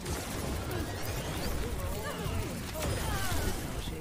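Energy weapons fire and zap rapidly in a video game.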